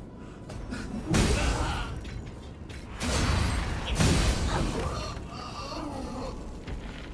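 Heavy blades slash and strike with loud impacts.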